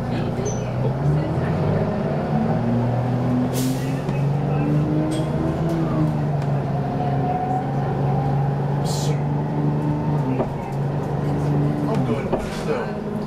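A bus engine whines, rising and falling in pitch as the bus speeds up and slows down.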